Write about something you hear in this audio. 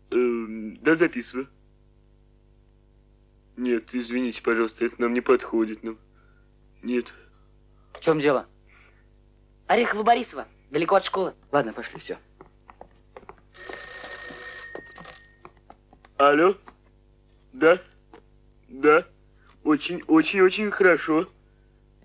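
A teenage boy talks into a telephone close by.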